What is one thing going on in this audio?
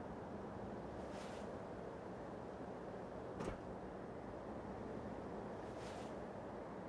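Footsteps tread softly across a hard floor.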